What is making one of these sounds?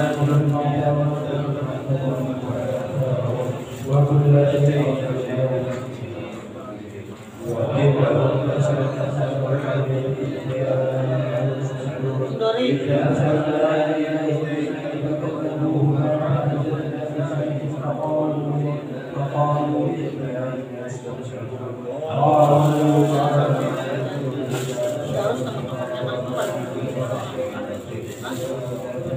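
A woman sings in long, held notes close by.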